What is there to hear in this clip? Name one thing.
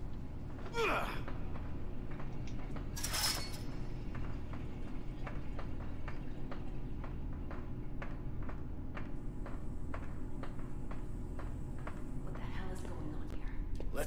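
Footsteps clank steadily on a metal grating.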